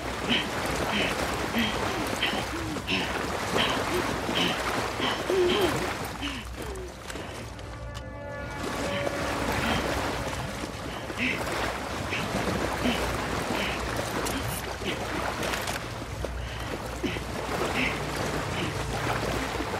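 Footsteps splash slowly through shallow water.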